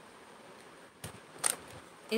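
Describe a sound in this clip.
Plastic bags crinkle and rustle close by.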